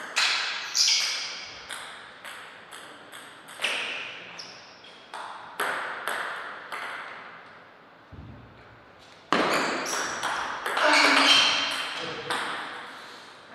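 A table tennis ball clicks sharply off paddles and the table in a small echoing hall.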